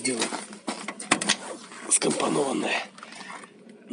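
A truck's cab door unlatches and swings open.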